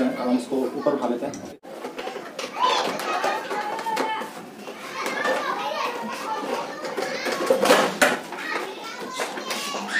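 Plastic panels rattle and knock as a motorcycle fairing is handled.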